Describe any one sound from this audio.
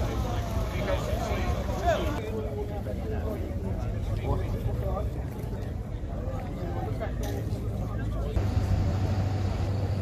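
Adult men talk casually nearby in an outdoor crowd.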